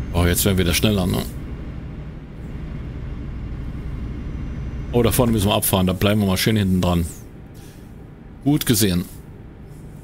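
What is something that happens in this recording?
A middle-aged man talks with animation through a headset microphone, close by.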